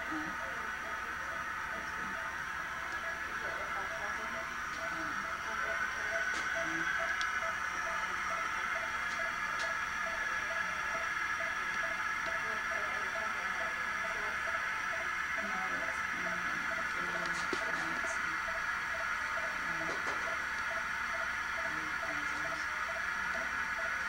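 Air hisses steadily through a tube close by.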